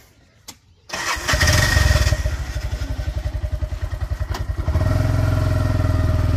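An auto-rickshaw engine starts and runs with a loud rattling putter.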